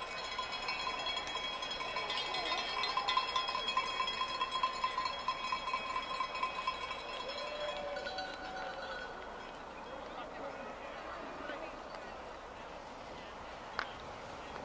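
A crowd of spectators cheers and calls out from a distance outdoors.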